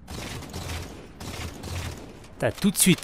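Rifle shots fire in short bursts.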